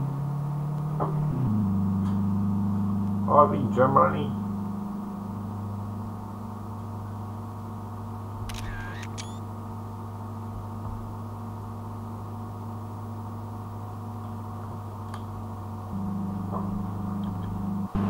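A car engine hums steadily, shifting pitch as the car speeds up and slows.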